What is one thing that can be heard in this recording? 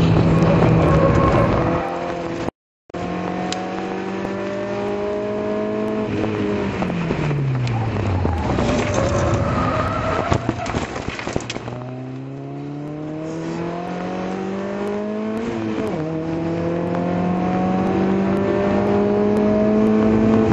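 A car engine roars loudly up close, rising in pitch as it accelerates and dropping as it shifts gear.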